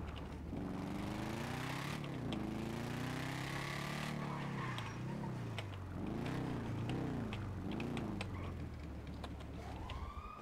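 A motorcycle engine revs up and down as the bike rides along and slows down.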